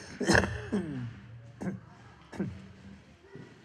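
A large hand drum booms a few times.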